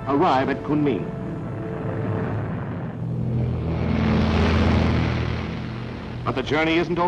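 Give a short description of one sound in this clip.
Propeller aircraft engines roar loudly during takeoff.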